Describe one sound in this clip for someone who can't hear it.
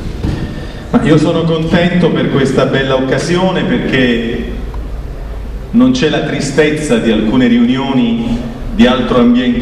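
A middle-aged man speaks calmly into a microphone in an echoing hall.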